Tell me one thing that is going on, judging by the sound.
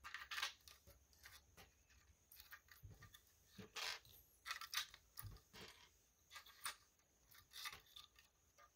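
Plastic toy bricks click and rattle as hands handle them.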